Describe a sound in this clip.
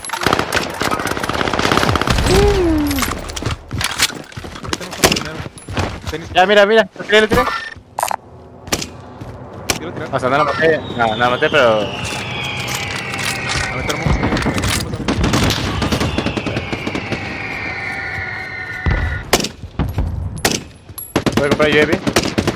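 Gunshots crack in sharp, separate bursts.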